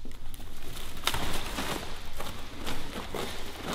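Plastic sacks crinkle and rustle as a man climbs onto them.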